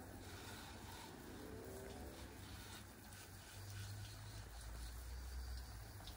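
A pressure washer sprays water in a steady hiss.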